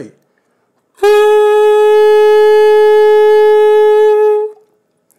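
A saxophone mouthpiece plays one steady, shrill note.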